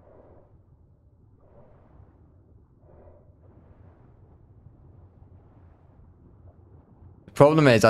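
Water rumbles low and murmurs steadily underwater.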